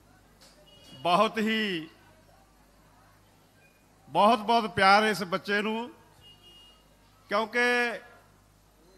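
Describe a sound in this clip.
An elderly man sings loudly through a microphone and loudspeakers.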